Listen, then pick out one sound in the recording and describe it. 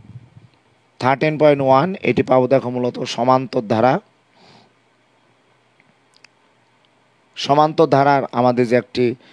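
A man speaks calmly through a close microphone.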